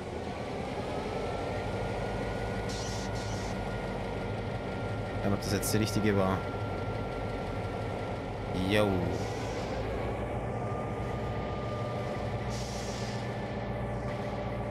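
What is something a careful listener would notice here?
A locomotive engine idles with a steady low rumble.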